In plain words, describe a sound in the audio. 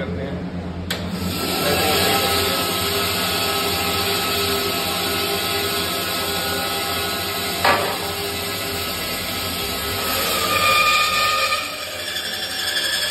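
A band saw motor hums steadily.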